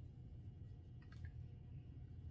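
A metal spoon clinks against a small plastic cup.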